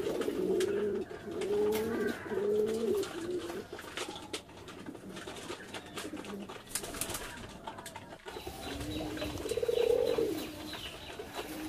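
Pigeons peck rapidly at grain on a hard floor.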